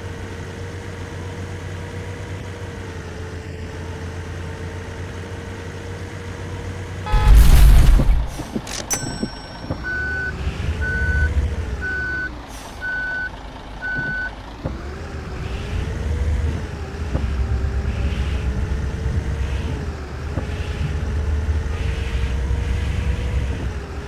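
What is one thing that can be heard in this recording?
A bus engine hums and rises and falls in pitch as it drives.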